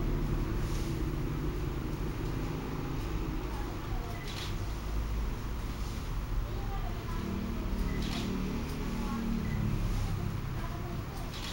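A comb scrapes through hair.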